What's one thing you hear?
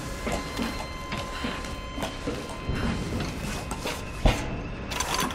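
Footsteps knock on a wooden ladder in a steady climbing rhythm.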